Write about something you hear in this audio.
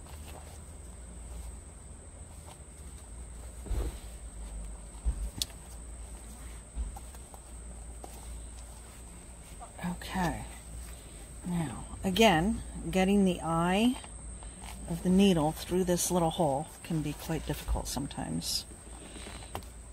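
Thread rustles softly as it is pulled through fabric.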